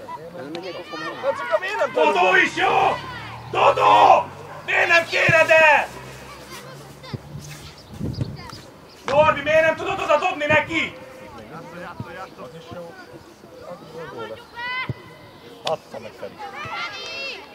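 Children shout and call out to each other across an open field.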